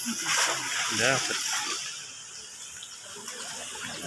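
Water splashes as a man wades through a shallow river.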